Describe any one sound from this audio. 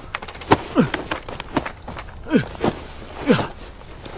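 Heavy cloth rustles and flaps against grass.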